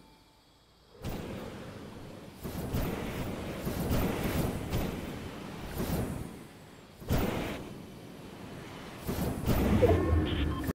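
Wind rushes past in loud, swelling gusts.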